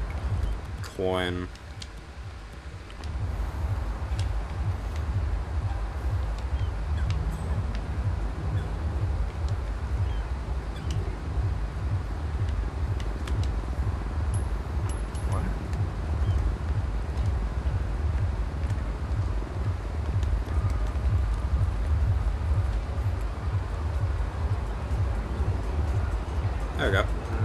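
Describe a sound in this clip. A young man talks calmly into a headset microphone.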